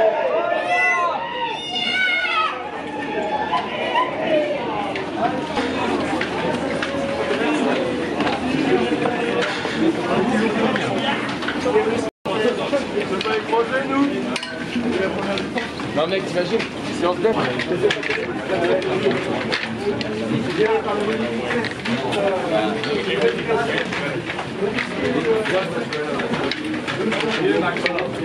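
A crowd of men and women chatters nearby in an echoing indoor space.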